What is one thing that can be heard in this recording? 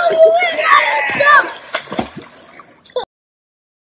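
Water splashes as a child kicks in a pool.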